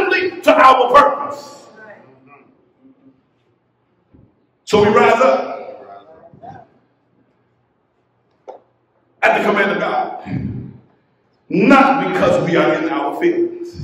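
A man preaches with animation into a microphone, in bursts separated by pauses.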